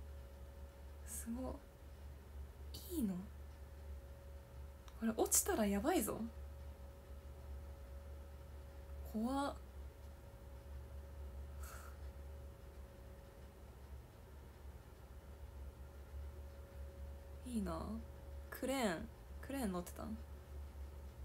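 A young woman speaks softly and cheerfully in short bursts, close to a microphone.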